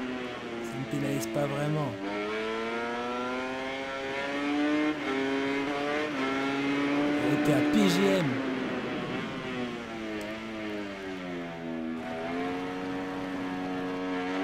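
A motorcycle engine revs high and shifts up and down through the gears.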